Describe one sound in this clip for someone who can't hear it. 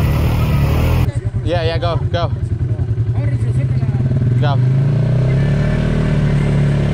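A quad bike engine idles with a low, steady rumble.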